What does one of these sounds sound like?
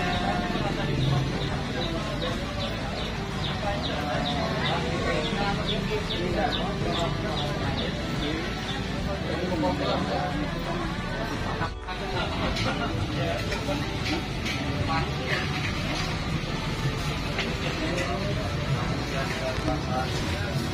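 People chatter and talk all around, outdoors in a busy crowd.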